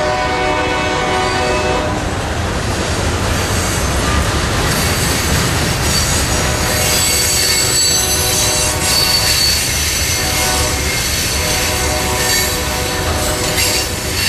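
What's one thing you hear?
A long freight train rumbles steadily past on the rails.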